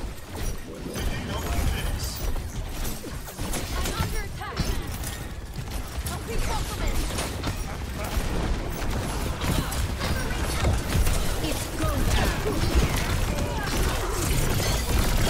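Game explosions and impacts thump repeatedly.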